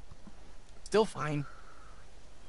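A young man speaks briefly and calmly.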